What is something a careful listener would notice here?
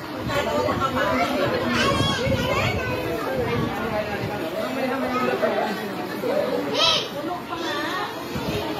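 A crowd of children and women chatter at once outdoors.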